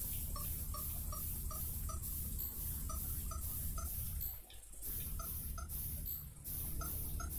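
Electronic game tones beep in a quick, even rhythm.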